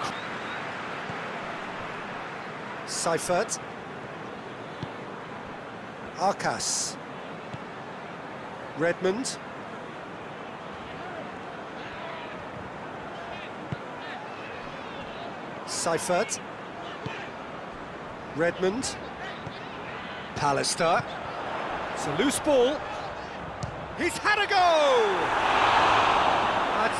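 A large crowd murmurs and chants steadily in a big stadium.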